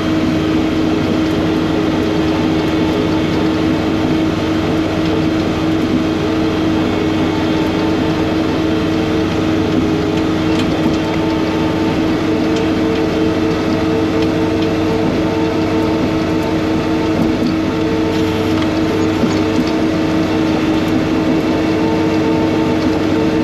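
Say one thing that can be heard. Snow hisses and sprays from a snow blower chute.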